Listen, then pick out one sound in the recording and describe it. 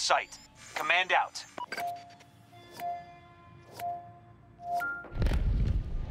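Short electronic beeps sound in a quick series.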